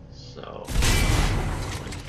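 A gun fires with a loud blast.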